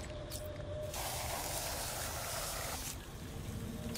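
Explosive gel hisses as it is sprayed onto a wall.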